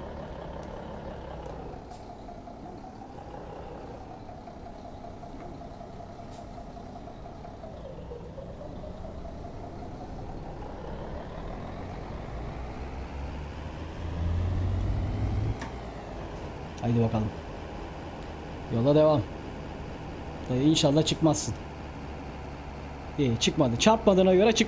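A truck engine hums steadily and changes pitch as it speeds up and slows down.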